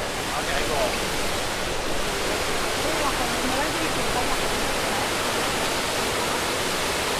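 Water splashes and rushes steadily from a large fountain.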